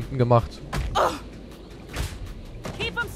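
Heavy blows land with dull thuds.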